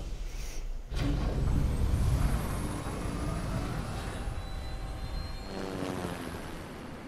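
A propeller aircraft engine roars past.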